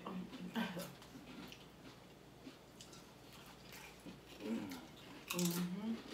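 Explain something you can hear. Crunchy chips crackle as people eat.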